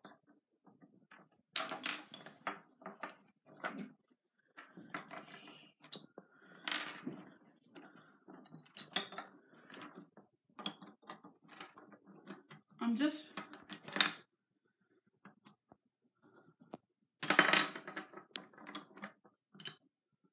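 Wooden toy logs click and knock together on a table.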